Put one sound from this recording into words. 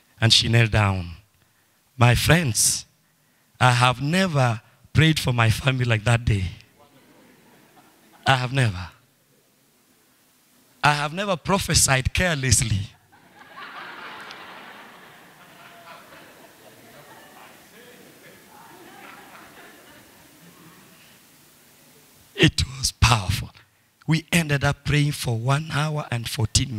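A man preaches with animation into a microphone, heard through loudspeakers in an echoing hall.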